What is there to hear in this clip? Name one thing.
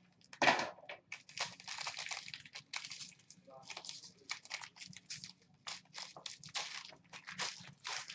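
Plastic wrapping crinkles in hands.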